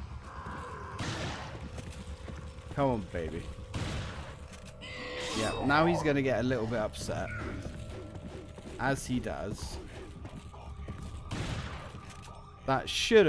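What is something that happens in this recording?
A shotgun fires with loud booming blasts.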